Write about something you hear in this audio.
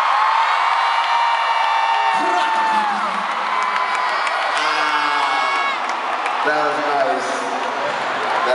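A man sings through loudspeakers in a large echoing hall.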